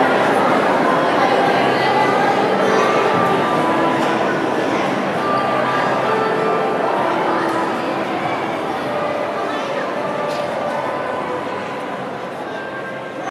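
A crowd of people chatter all at once, echoing through a large hall.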